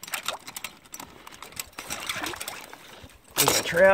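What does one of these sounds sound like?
A beaver thrashes and splashes in shallow water.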